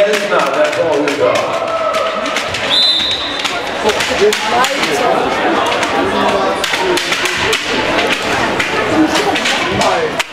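Players shout to each other across a large echoing hall.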